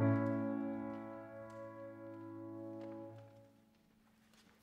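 A piano plays a few slow notes.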